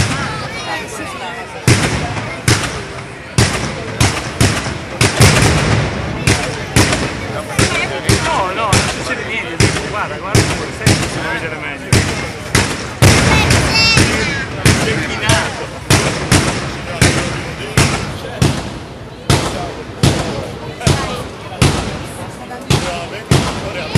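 Loud firecrackers bang in rapid succession outdoors, echoing around.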